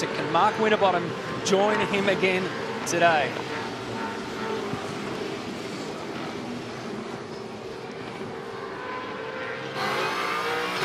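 Racing car engines roar loudly as the cars speed past, with their pitch rising and falling.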